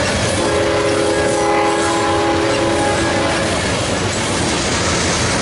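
A freight train rumbles past close by with loud, steady noise.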